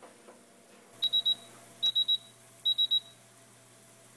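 A waffle maker beeps three times.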